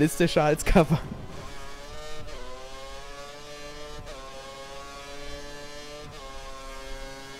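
A racing car engine screams and climbs in pitch, dropping briefly at each gear change.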